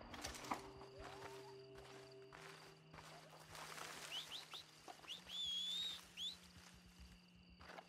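Footsteps rustle through dry brush.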